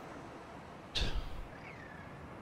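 A metal hatch clanks open with a heavy thud.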